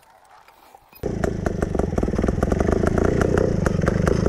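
A trials motorcycle engine runs close up as the bike rolls downhill.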